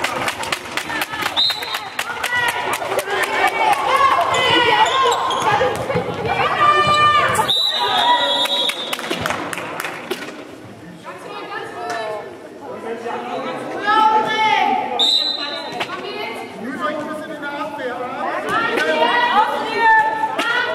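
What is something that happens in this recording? Sneakers squeak sharply on a hard gym floor.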